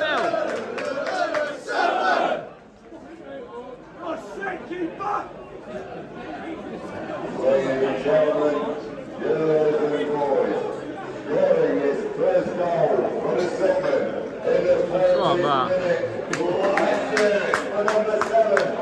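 A large crowd of men sings a chant loudly outdoors.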